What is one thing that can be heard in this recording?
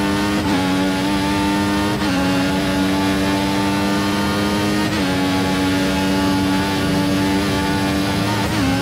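A racing car engine screams at high revs, dropping briefly with each gear shift.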